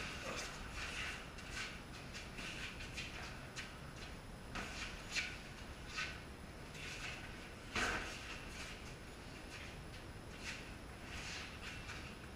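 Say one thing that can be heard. Boxing gloves thump against padded mitts in quick bursts.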